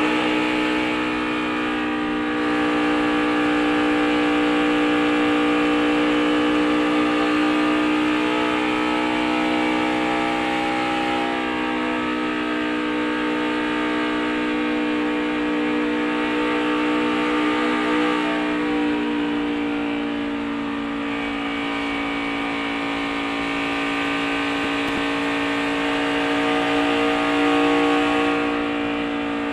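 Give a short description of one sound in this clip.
Wind rushes past the racing car.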